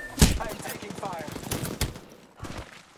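Sharp gunshots crack close by.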